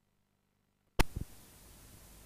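A loud click sounds suddenly.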